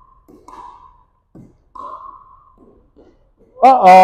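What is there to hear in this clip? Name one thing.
Paddles pop against a plastic ball in an echoing gym.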